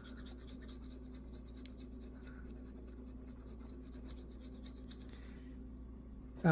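A coin scratches across a card with short, dry rasps.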